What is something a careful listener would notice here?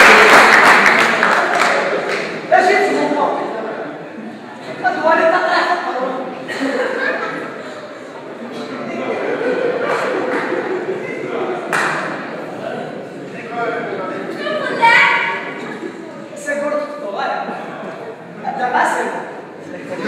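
A man speaks loudly with animation on a stage in an echoing hall.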